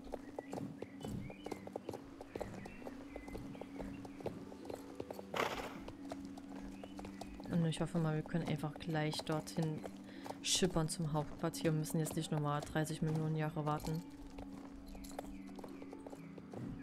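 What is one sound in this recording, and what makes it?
A horse's hooves clop steadily on wooden boards.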